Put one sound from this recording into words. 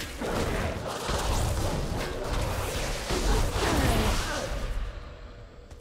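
Magical spell effects crackle and boom in a fantasy battle.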